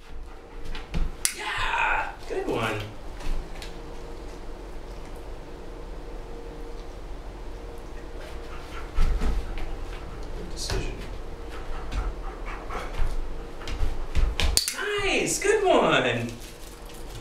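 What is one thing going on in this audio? A dog's paws patter on a carpet.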